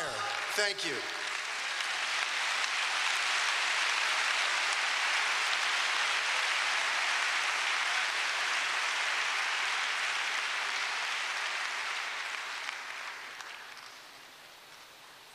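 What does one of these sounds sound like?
A large crowd applauds, then the applause fades away.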